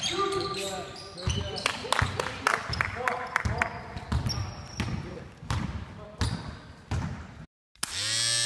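Basketball shoes squeak on a gym floor.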